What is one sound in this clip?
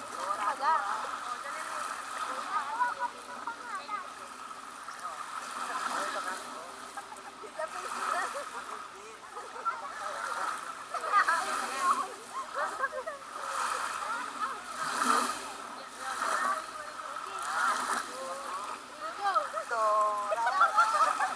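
Water splashes as people play in shallow sea water.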